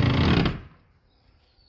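A wooden board knocks loudly against a wall.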